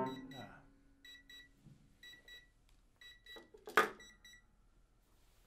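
Short, faint piano notes ring out in a quick pattern.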